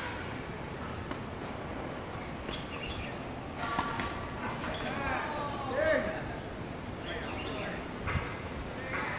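A tennis racket strikes a ball on an outdoor hard court.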